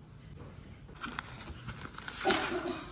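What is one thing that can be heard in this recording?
Paper rustles and pages turn close by.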